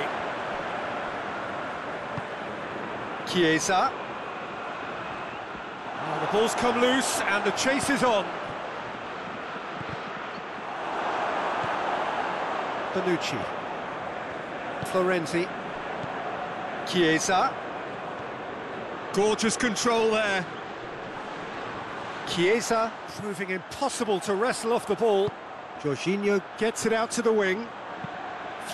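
A large stadium crowd murmurs and cheers steadily, swelling at times.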